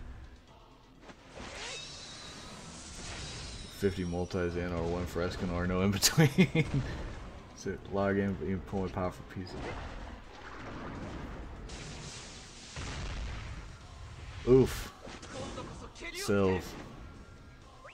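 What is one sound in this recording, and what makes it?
Game sounds of blasts and impacts ring out.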